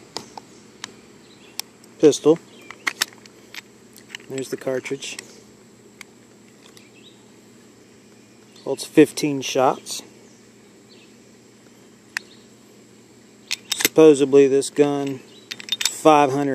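Hard plastic parts click and rattle as a small pistol is handled.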